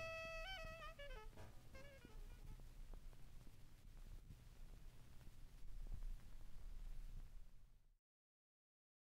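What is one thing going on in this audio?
A vinyl record crackles softly under the stylus.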